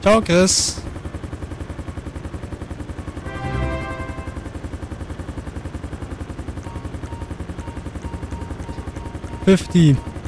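A helicopter's rotor thumps steadily in a fast, even beat.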